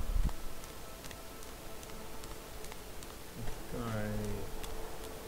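Footsteps crunch steadily along a dirt path.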